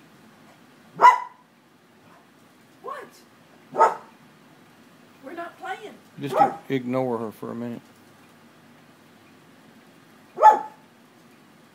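A dog barks sharply and loudly.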